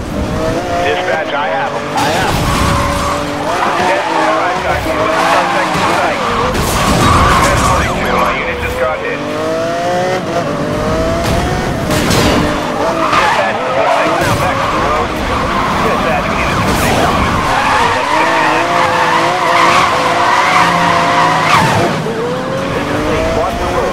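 A sports car engine roars and revs up and down at high speed.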